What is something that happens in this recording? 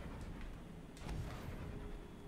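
A bright magical burst sparkles and whooshes.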